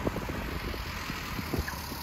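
A truck engine rumbles as it approaches.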